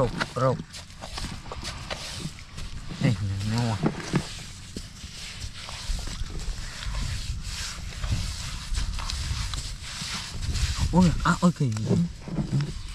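Hands scrape and scoop through loose, dry soil.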